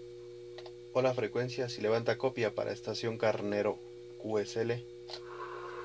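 A man's voice speaks through a radio loudspeaker, crackly and compressed.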